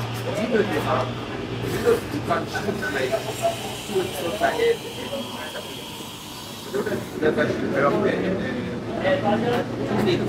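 A young man slurps a drink.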